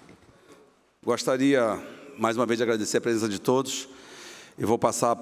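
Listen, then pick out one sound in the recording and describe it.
A middle-aged man speaks calmly into a microphone in an echoing hall.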